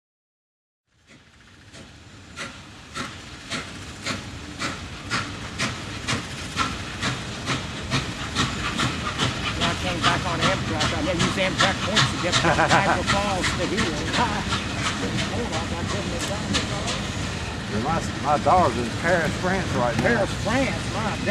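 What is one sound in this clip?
A steam locomotive chuffs in a steady, quickening rhythm.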